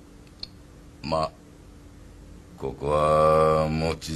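An older man speaks loudly and briefly nearby.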